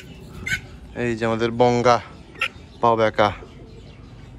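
A duck quacks loudly several times up close.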